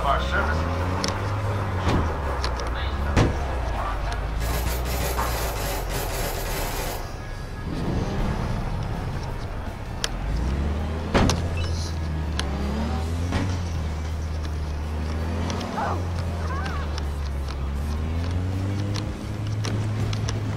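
A van engine hums and revs as it drives.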